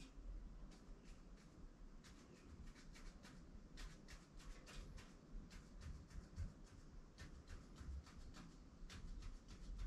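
A marker squeaks and taps in quick short strokes.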